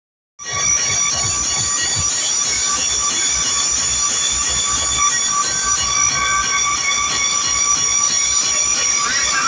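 Loud music with a thumping beat blares from large loudspeakers.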